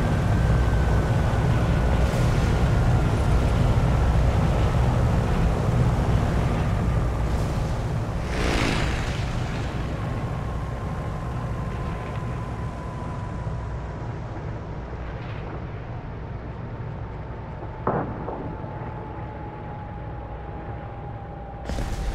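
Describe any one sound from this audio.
A propeller plane engine drones steadily and slowly grows quieter.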